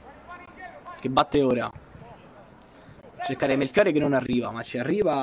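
Young men shout to each other across an outdoor football pitch.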